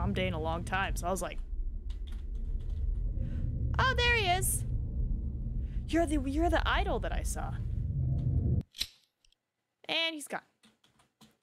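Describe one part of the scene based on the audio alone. A young woman speaks with animation through a microphone, close by.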